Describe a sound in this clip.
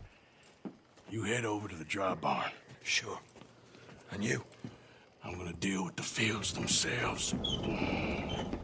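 A second man answers in a quiet, gruff voice.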